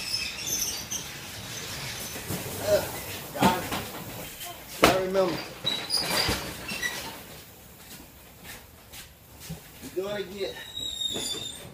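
Cardboard boxes thump and scrape as they are moved.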